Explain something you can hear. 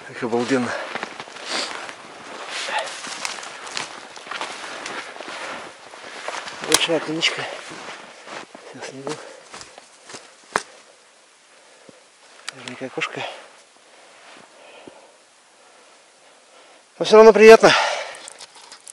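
A man speaks briefly up close.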